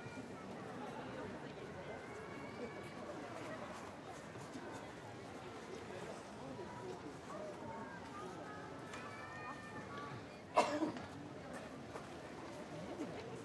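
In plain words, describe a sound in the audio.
A paper streamer wand rustles softly as it is swung.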